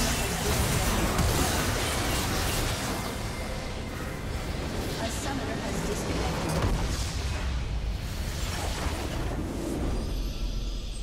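Magic blasts and crackling spell effects clash in a busy fight.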